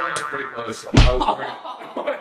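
A body thuds onto the floor.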